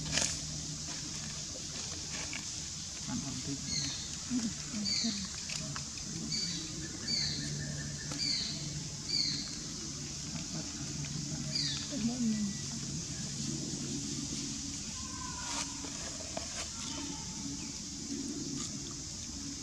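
A baby monkey chews softly on food close by.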